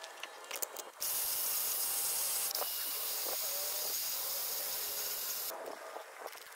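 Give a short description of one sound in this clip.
A power tool whirs loudly and steadily.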